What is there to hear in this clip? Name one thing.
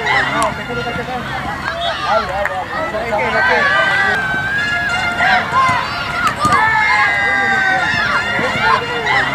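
Children shout and call out across an outdoor pitch.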